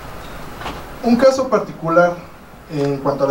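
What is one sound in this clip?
A man speaks calmly to an audience in a room.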